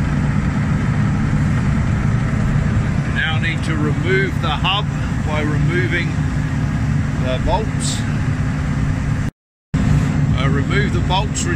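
A large engine hums steadily nearby.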